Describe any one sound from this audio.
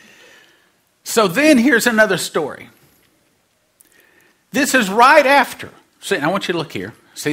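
A middle-aged man speaks with animation into a microphone, in bursts with pauses.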